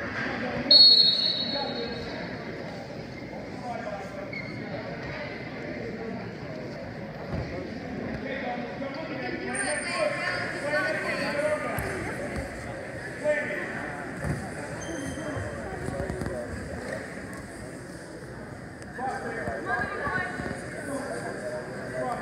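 Wrestlers' shoes squeak on a mat.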